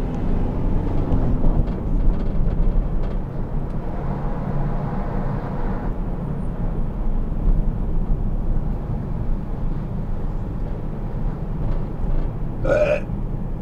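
A car engine hums steadily from inside a moving car, with road rumble.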